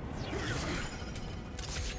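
A blade swings through the air.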